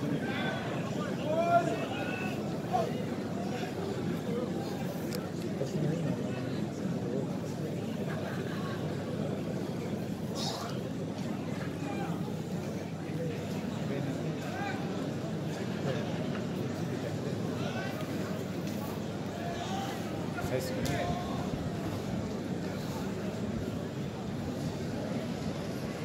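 A large outdoor crowd murmurs and calls out.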